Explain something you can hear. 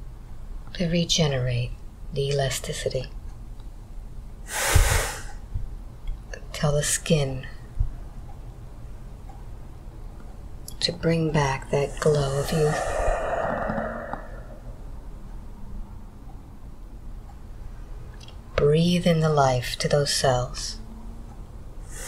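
An elderly man speaks softly in short, drowsy phrases close by.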